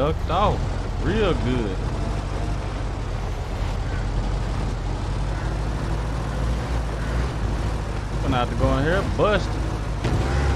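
A man talks with animation through a microphone.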